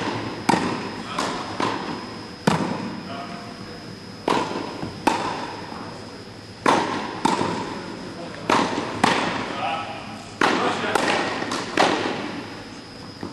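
Tennis balls are struck with rackets, each hit a sharp pop echoing in a large hall.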